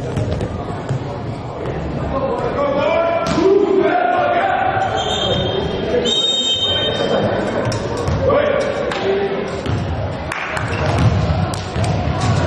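Young men shout and call out in an echoing sports hall.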